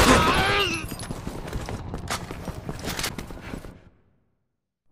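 Heavy boots thud on a wooden floor.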